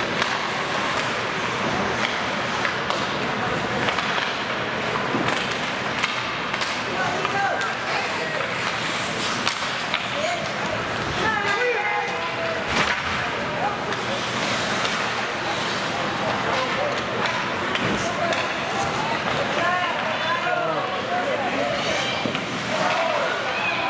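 Hockey sticks clack against a puck now and then.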